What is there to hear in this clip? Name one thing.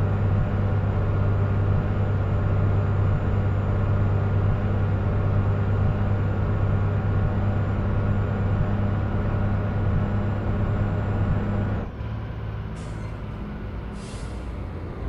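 A truck engine drones steadily at low pitch, growing quieter near the end.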